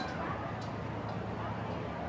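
Marching drums beat in a steady rhythm.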